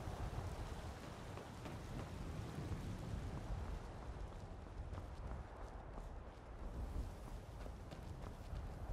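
Footsteps thud on wooden planks and stone.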